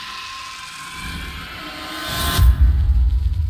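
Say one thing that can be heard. A magical blast whooshes.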